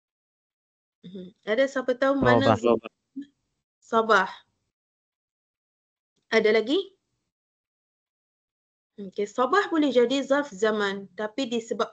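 A woman speaks calmly, heard through an online call, with pauses.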